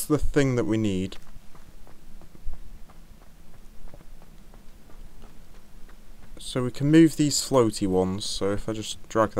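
Footsteps run over stone and grass.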